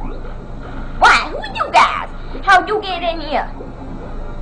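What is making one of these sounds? Short, sharp video game sound effects chirp loudly a few times.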